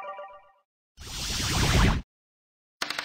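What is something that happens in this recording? A game piece is knocked off with a whoosh.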